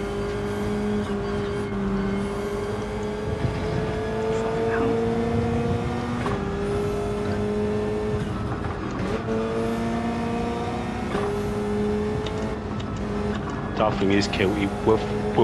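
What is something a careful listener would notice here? A racing car engine roars steadily, its pitch rising and dropping as the gears shift.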